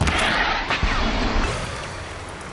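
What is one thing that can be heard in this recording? An arrow whooshes from a bow with a sharp burst of icy crackling.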